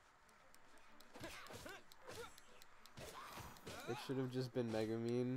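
Weapons swing and strike in a quick fight.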